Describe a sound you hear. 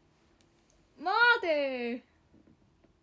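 A young woman lets out a loud, high-pitched exclamation close by.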